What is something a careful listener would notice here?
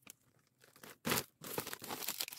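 A plastic package thumps down onto a table.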